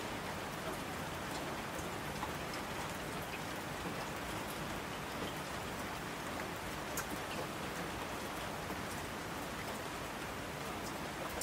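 Rushing streams roar down a mountainside.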